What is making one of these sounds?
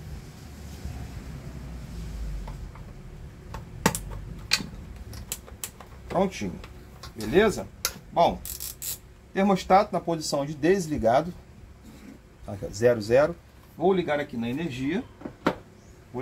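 A plastic iron clicks and knocks as it is handled.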